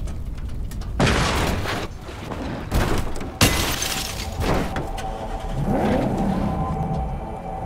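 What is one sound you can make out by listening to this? A car engine revs as the car drives off.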